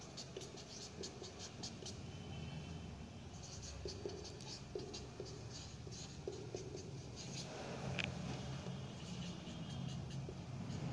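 A marker squeaks and taps on a whiteboard in short strokes.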